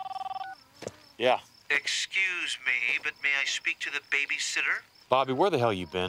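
A young man speaks calmly into a phone.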